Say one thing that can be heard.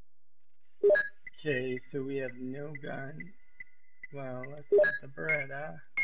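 Short electronic beeps sound as a game menu is scrolled.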